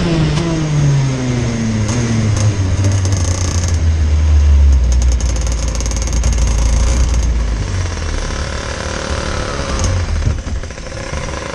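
A kart engine buzzes up close and winds down as the kart slows to a stop.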